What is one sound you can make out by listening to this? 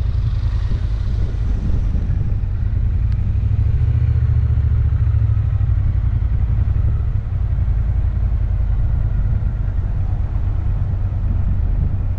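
A motorcycle engine rumbles steadily at low revs.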